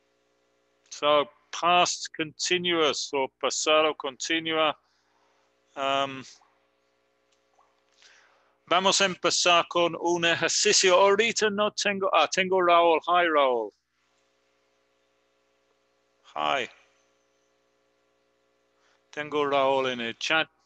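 A middle-aged man speaks calmly through a headset microphone over an online call.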